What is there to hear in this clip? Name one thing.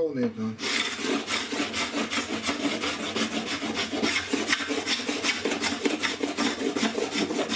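A metal tool scrapes rapidly across wood in short, rasping strokes.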